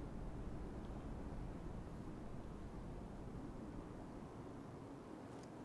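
Footsteps tread softly over rubble.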